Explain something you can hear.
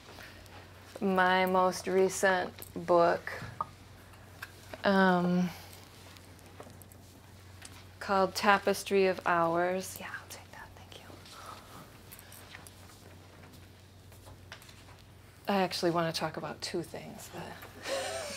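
A woman speaks calmly to a group.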